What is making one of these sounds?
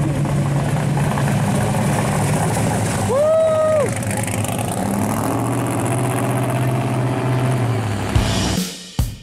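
A pickup truck's engine rumbles as the truck rolls by.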